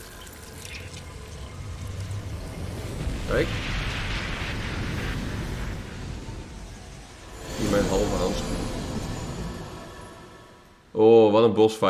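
A crackling burst of energy swells into a loud roaring flash.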